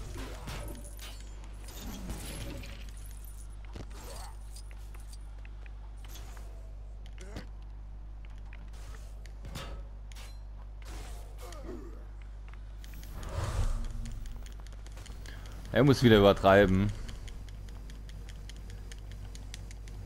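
Video game magic zaps and crackles in short bursts.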